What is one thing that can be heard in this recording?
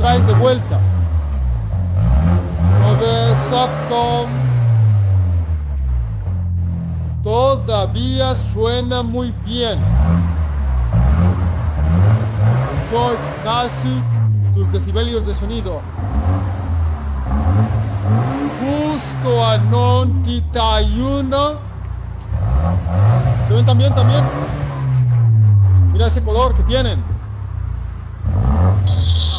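An exhaust crackles and pops as the engine revs drop.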